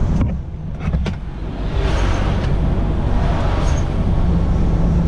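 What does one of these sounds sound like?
A passing truck rushes by close on the left.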